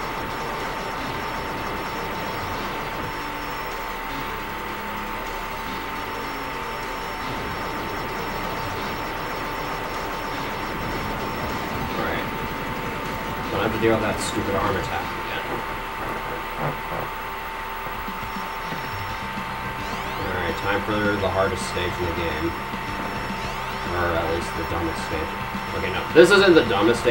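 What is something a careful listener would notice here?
Electronic game music plays steadily.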